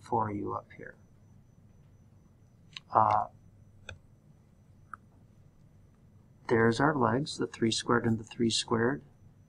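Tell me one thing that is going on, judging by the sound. A man speaks calmly and clearly into a microphone, with pauses.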